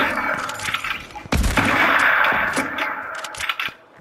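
A sniper rifle fires a shot.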